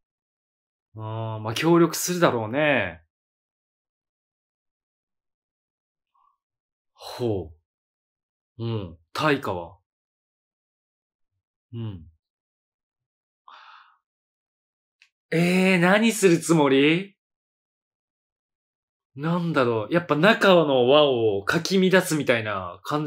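A man talks animatedly into a close microphone, in short bursts with pauses.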